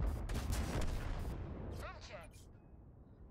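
Explosions boom and crackle loudly.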